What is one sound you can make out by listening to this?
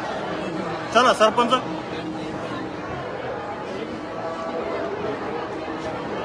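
A crowd of men talks and shouts nearby.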